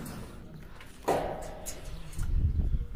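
A wooden gate knocks and creaks open.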